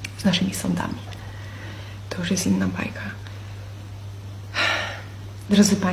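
A young woman speaks calmly and close to the microphone, in short phrases.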